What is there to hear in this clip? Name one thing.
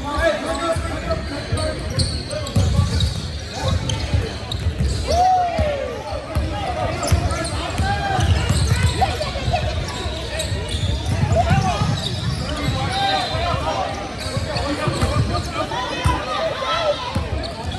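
Players and spectators shout and call out in a large echoing gym.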